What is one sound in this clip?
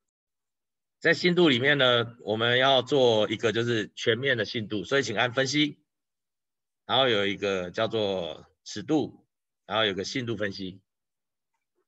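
A man speaks calmly through a microphone, as in an online call.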